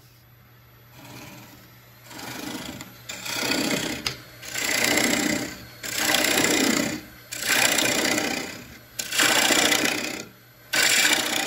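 A gouge cuts into spinning wood on a lathe in scraping bursts.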